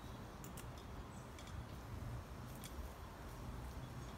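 Footsteps crunch softly on dry leaves and soil.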